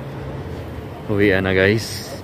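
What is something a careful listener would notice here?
A young man talks close by, outdoors at night.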